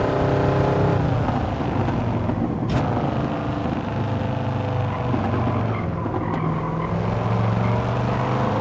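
A car engine drops in pitch as the car slows into a corner, then climbs again.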